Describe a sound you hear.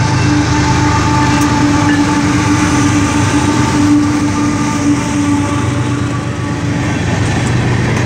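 Diesel-electric freight locomotives rumble past close by.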